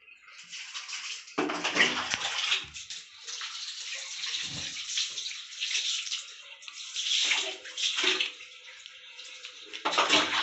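Water splashes as it is poured from a mug.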